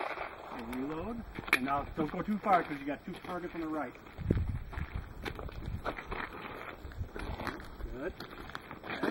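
An older man speaks calmly and clearly, close to a microphone, outdoors.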